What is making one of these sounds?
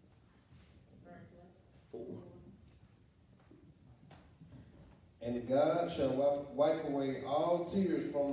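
A middle-aged man speaks with animation into a microphone in an echoing room.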